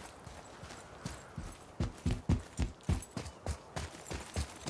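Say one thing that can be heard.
A man's heavy footsteps thud quickly on stone.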